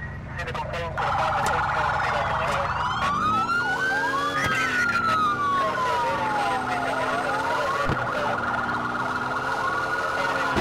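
A police siren wails steadily.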